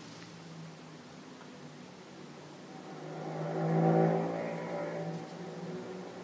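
A brush dabs and scrapes softly on canvas.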